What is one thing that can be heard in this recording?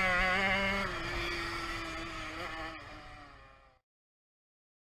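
A motorcycle engine roars close by, then fades away.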